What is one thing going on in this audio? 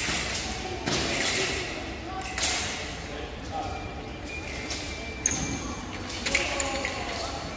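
Fencers' shoes stamp and squeak on the floor of an echoing hall.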